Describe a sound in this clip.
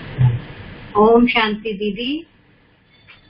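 A middle-aged woman speaks over an online call.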